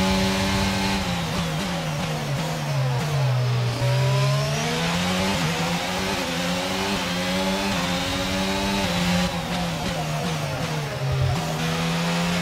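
A racing car engine drops in pitch as the car slows for corners.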